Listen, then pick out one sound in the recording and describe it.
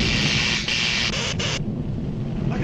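An electric cable crackles and sizzles with sparks.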